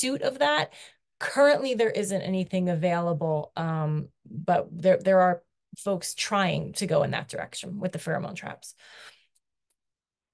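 A middle-aged woman speaks with animation over an online call.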